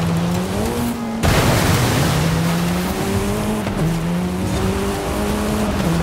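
Tyres crunch and rumble over rough ground.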